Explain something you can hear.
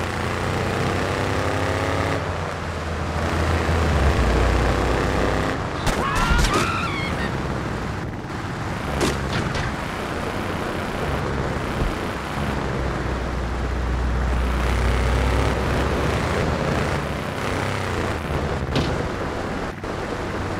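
A car engine hums steadily as a car drives through snow.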